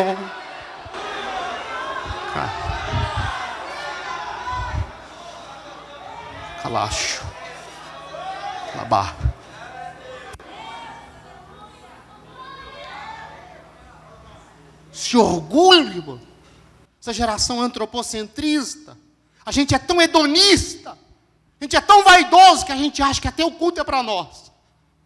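A man preaches with animation into a microphone, his voice ringing through a large echoing hall.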